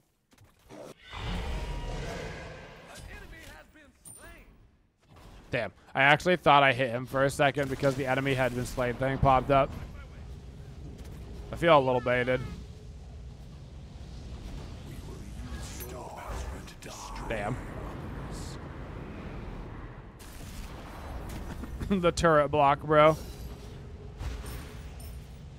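Video game effects whoosh and clash.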